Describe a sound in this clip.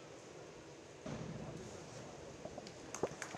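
A diver splashes into the water in an echoing hall.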